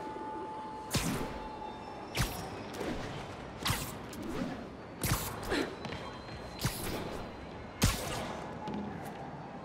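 Sharp, quick zips and whooshes come again and again.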